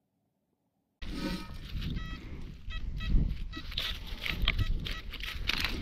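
Footsteps crunch on dry grass and twigs.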